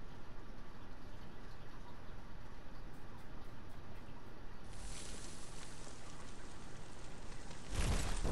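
Footsteps patter quickly on sand.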